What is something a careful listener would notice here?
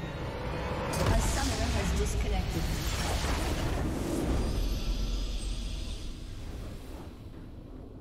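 A magical crystal structure bursts apart in a loud, crackling blast that slowly fades.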